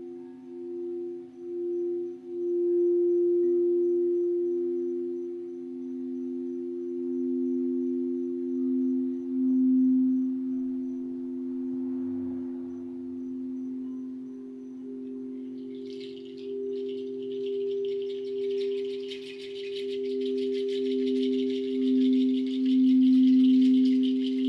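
Singing bowls ring with steady, overlapping tones that swell and pulse.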